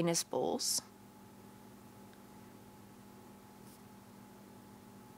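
A felt-tip marker squeaks softly as it writes on paper.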